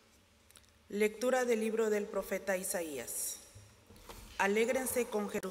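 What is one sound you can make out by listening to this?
A woman reads out calmly through a microphone.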